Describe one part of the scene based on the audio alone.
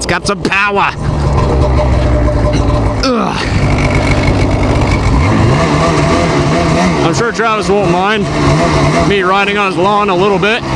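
A snowmobile engine roars as it drives off across grass.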